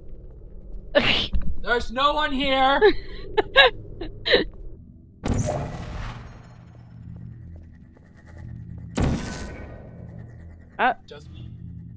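A portal gun fires with short electronic zaps.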